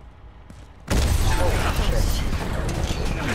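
An explosion booms suddenly.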